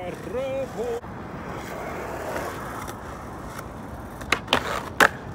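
Skateboard wheels roll over rough concrete.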